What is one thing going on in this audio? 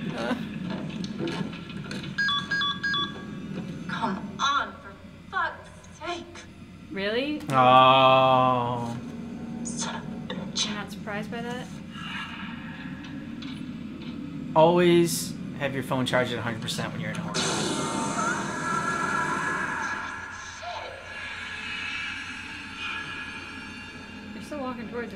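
A woman talks and reacts close to a microphone.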